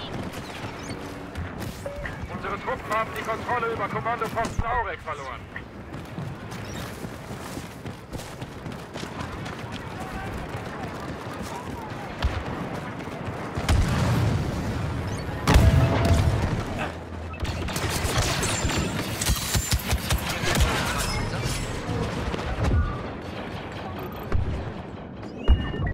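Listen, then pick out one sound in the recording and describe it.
Blaster shots crack in quick bursts.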